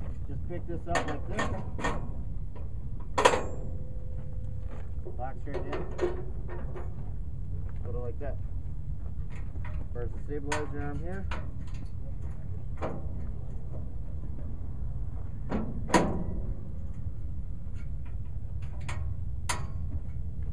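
Metal pins and latches clank and knock against a steel frame.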